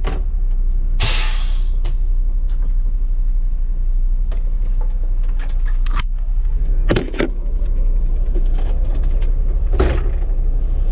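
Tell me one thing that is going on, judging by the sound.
Switches click on a dashboard.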